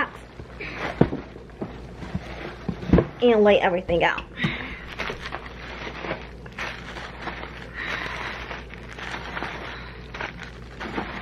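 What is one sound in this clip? Small wrapped items are set down on a wooden surface with soft knocks.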